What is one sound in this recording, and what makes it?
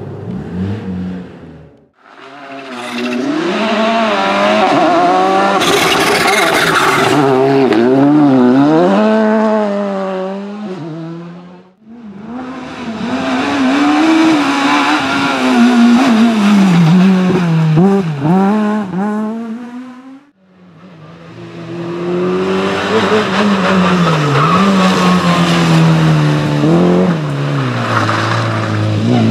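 A rally car engine roars close by, revving up and down through the gears.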